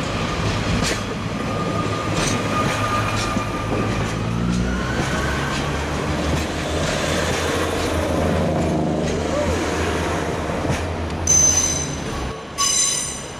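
A diesel train engine rumbles and revs as the train pulls out.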